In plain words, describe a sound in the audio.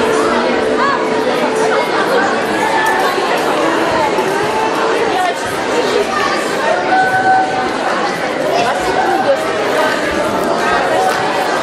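Children shout and call out over the crowd.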